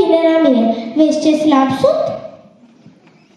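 A woman sings through a microphone in a large hall.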